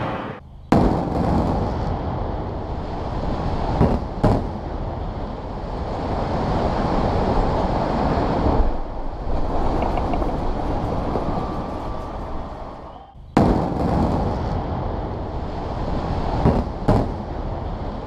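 Explosive charges go off with sharp, loud bangs.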